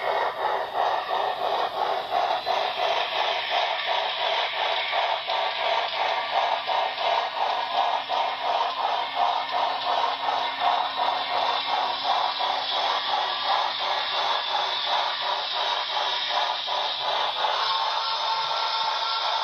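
A model steam locomotive chuffs rhythmically and steadily.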